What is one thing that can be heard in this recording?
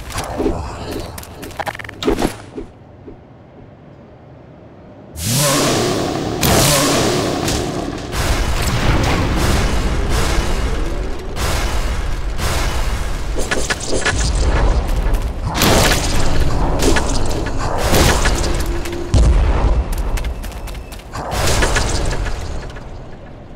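Monsters screech and snarl as they fight.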